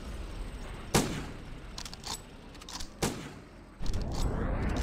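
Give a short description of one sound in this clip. A truck door opens and shuts with clunks.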